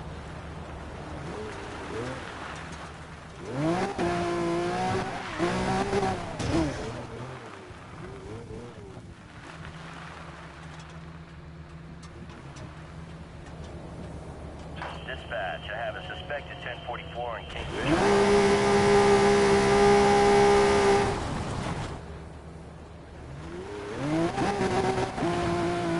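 Tyres skid on gravel.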